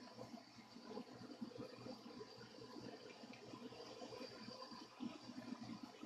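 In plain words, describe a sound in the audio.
A cloth rubs softly against a guitar body.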